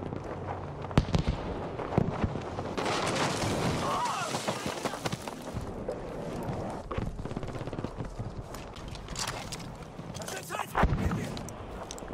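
Gunshots fire loudly and sharply.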